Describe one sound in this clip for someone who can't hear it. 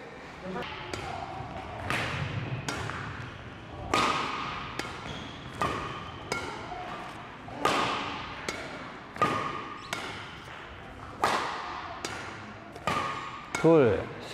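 A badminton racket smacks a shuttlecock again and again, ringing in a large echoing hall.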